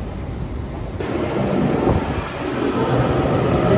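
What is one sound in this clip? A train rolls loudly along a platform.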